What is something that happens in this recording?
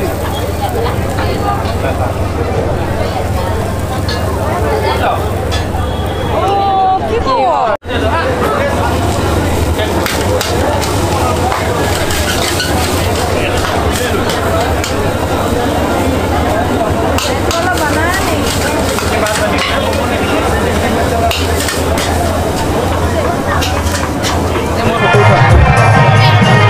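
A crowd chatters all around in a busy, noisy place.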